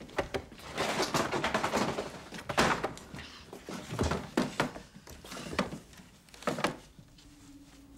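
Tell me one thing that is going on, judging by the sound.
A young boy speaks quietly and eagerly nearby.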